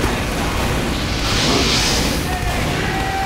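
A fiery explosion bursts loudly.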